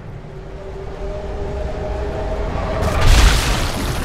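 A bullet whooshes through the air in slow motion.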